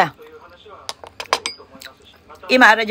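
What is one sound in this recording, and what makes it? A woman chews food with smacking sounds close to a microphone.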